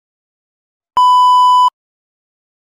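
A steady high test beep sounds briefly.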